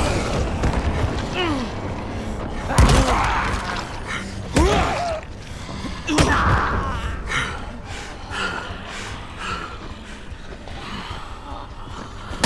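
Zombies growl and snarl nearby.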